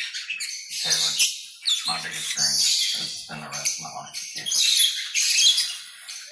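Small parrots chatter and chirp close by in quick, shrill bursts.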